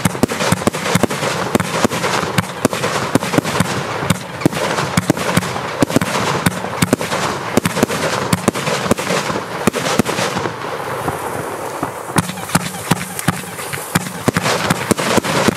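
Firework shells whistle and hiss as they rise.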